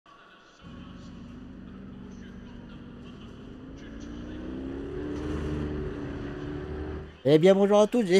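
A race car engine idles and slowly revs higher.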